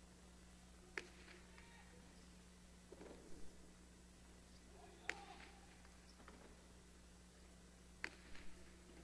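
A ball smacks hard against a wall and echoes in a large hall.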